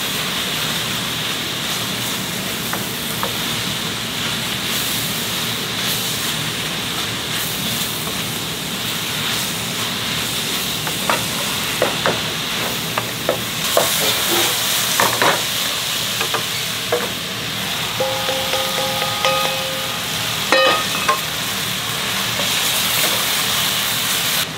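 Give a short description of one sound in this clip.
A wooden spatula scrapes and knocks against a metal pot.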